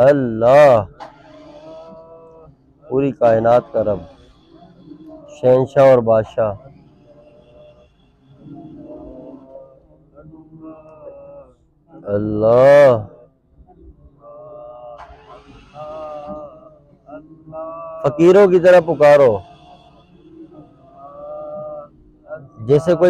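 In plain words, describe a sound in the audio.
A man chants slowly and softly close to a microphone, with louder drawn-out calls now and then.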